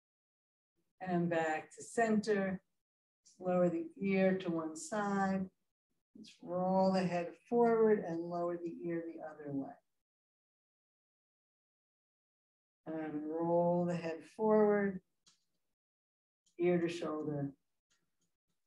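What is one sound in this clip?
A woman speaks calmly and clearly, close by, in pauses.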